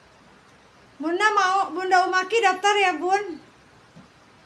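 A young woman speaks close by, with animation.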